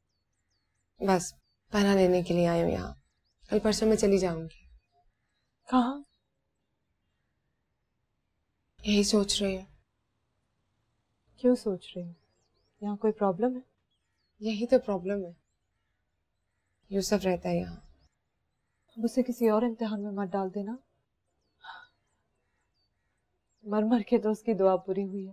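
A second young woman answers in a soft, earnest voice, close by.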